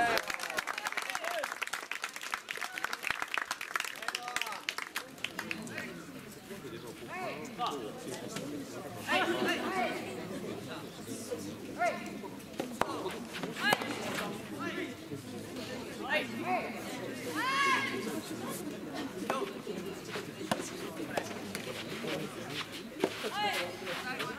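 Rackets strike a tennis ball with sharp pops.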